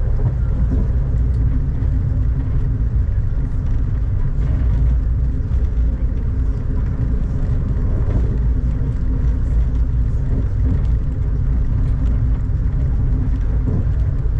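Raindrops patter against a window.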